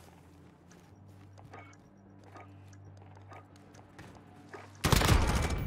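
Soft menu clicks tick as options are picked.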